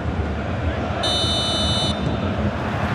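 A referee's whistle blows once, long and shrill.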